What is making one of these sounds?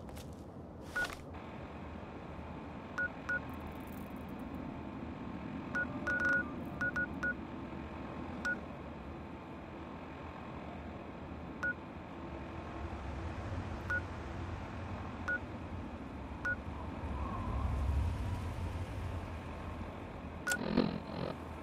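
Short electronic beeps sound at uneven intervals.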